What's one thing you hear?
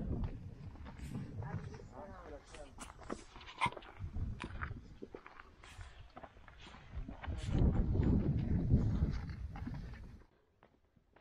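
Footsteps crunch on loose rocky ground.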